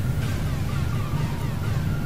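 A rubber grommet creaks softly as a hand twists it.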